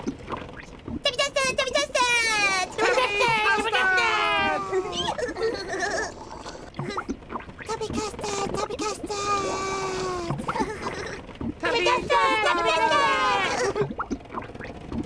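Several characters talk and giggle in high, childlike voices.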